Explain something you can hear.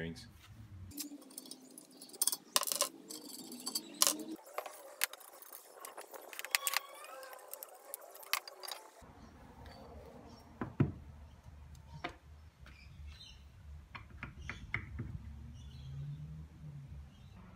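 Metal parts clink and knock against each other.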